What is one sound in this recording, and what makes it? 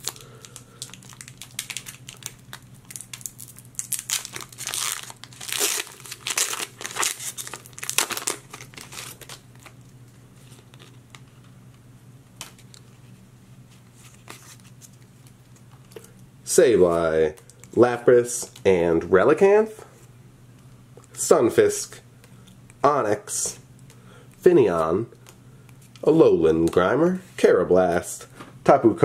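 Trading cards rustle softly as they are shuffled.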